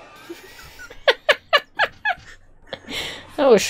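A young woman laughs loudly into a microphone.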